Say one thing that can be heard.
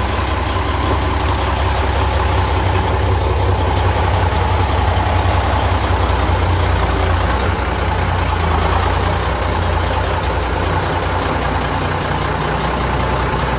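A large diesel truck engine idles with a deep, steady rumble.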